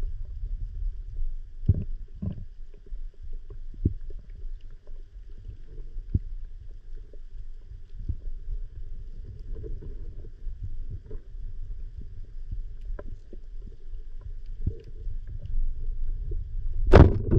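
A dull underwater rumble fills the recording, with scattered soft knocks and crackles.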